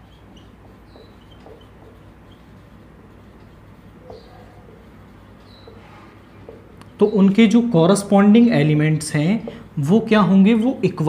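A marker squeaks on a whiteboard in short strokes.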